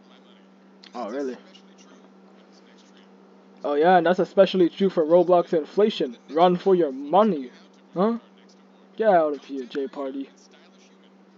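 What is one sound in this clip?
An adult man speaks with animation into a microphone, with pauses.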